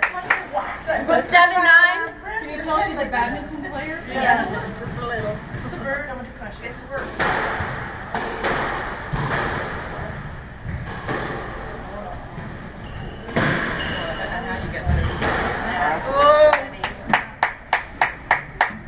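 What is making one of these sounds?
Young women talk and call out in an echoing hall.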